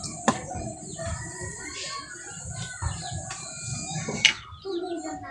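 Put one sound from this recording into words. A plastic game piece clicks onto a wooden board.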